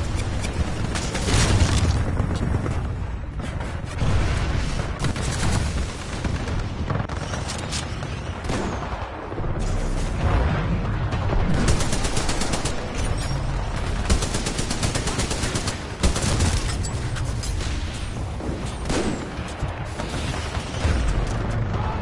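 Loud explosions boom.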